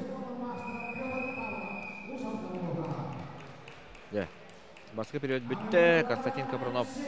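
A man speaks loudly nearby.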